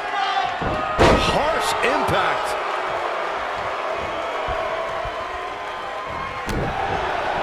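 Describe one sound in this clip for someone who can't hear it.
A heavy thud lands on a wrestling mat.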